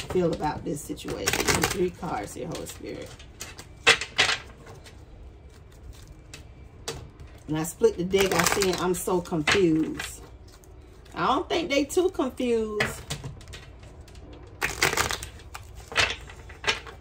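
Playing cards riffle and slap as a deck is shuffled.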